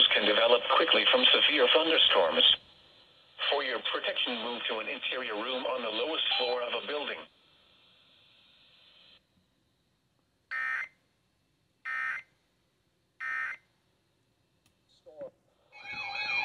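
Radio buttons click under a finger.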